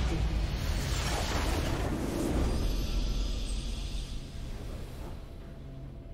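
A huge blast booms and rumbles, then fades.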